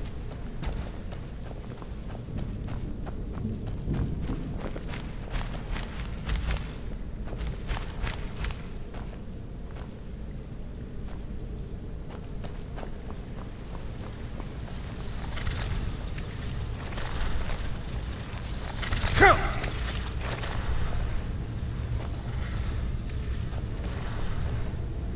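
Footsteps scuff and tap on stone floor.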